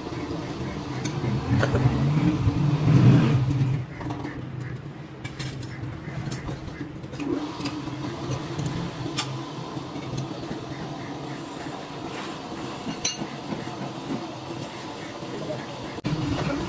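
Metal tools clink and scrape against a spinning crankshaft.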